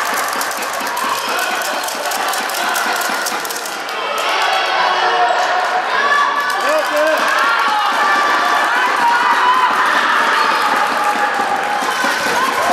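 A basketball bounces with quick thuds in a large echoing hall.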